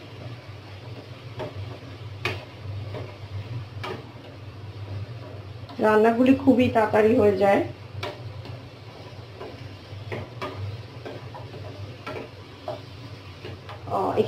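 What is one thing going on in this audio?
A metal spatula scrapes and clatters in a frying pan.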